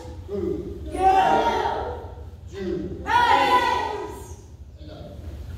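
Children shout loudly in unison.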